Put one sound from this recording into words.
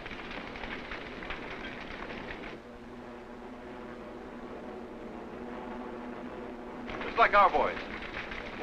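Aircraft engines drone steadily overhead.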